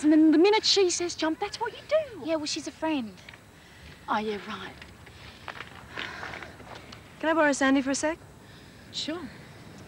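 A young woman answers in a pained, strained voice.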